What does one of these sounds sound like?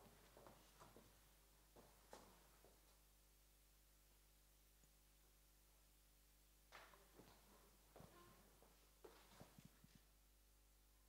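Heeled footsteps tap across a hard floor.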